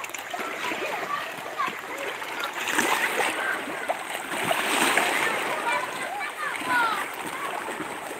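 A young person calls out nearby.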